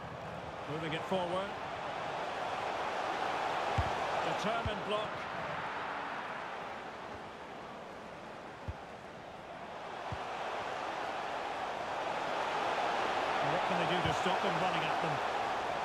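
A stadium crowd roars and swells loudly.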